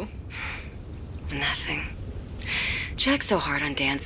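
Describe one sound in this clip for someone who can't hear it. A woman laughs.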